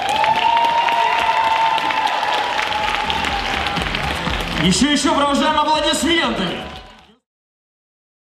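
A crowd cheers and whistles loudly in a large hall.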